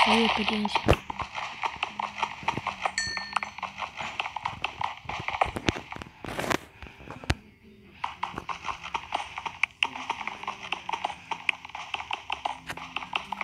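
A pickaxe chips rapidly and repeatedly at stone.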